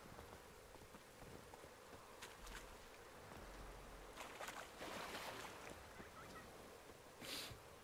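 Footsteps crunch on damp ground.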